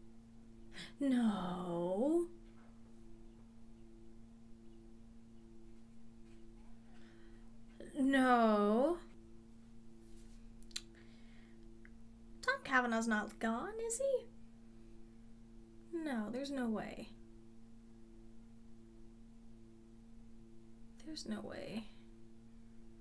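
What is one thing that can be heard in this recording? A young woman speaks close to a microphone in short, calm bursts with pauses between.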